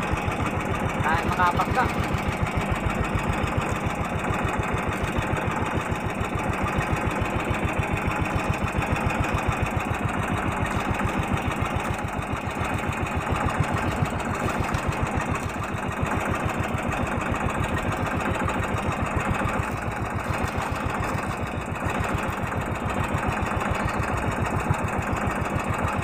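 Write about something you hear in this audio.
A boat engine chugs steadily and loudly.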